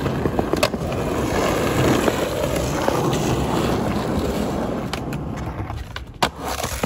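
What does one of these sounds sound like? Skateboard wheels roll and rumble over concrete.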